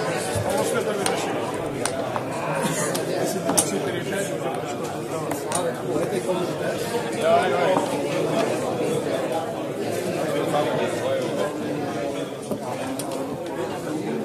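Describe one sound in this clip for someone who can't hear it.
Game pieces click and clack as they are moved on a board.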